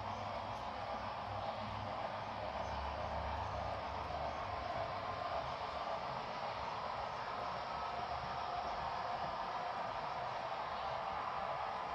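A model train's cars rumble and clatter steadily along the track.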